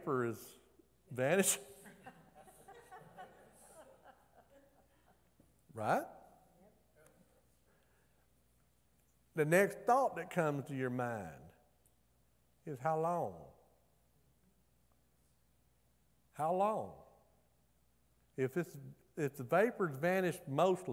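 A middle-aged man speaks with animation through a microphone, with long pauses, in a reverberant hall.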